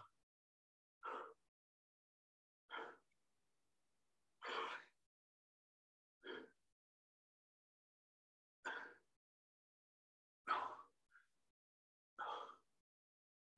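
A middle-aged man breathes out sharply at each movement of an exercise.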